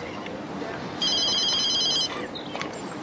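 A mobile phone beeps in a quick series of electronic tones.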